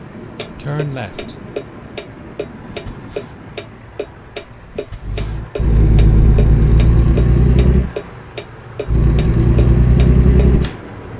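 A turn signal ticks at an even pace.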